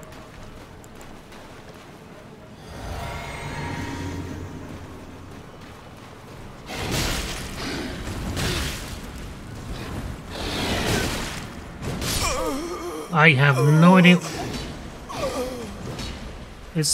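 Swords swing and clang in a fierce fight.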